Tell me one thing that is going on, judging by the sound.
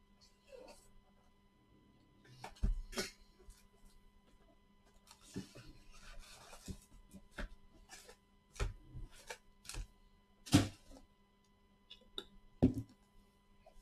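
Cardboard boxes knock and slide against each other on a table.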